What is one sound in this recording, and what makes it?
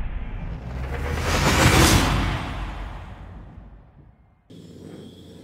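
Racing car engines roar past and fade away.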